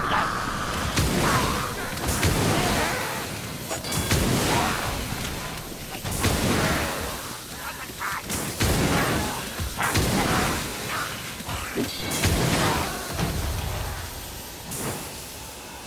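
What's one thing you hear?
Heavy pistols fire in quick, loud bursts.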